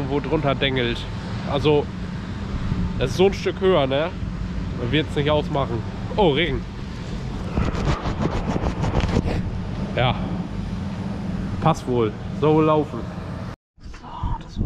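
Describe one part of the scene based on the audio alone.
A man talks up close into a microphone.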